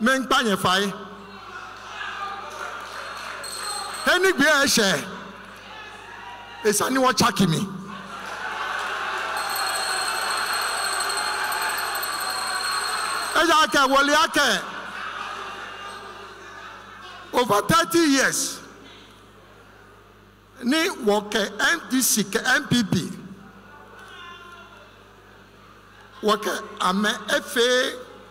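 A man speaks forcefully through a loudspeaker in a large echoing hall.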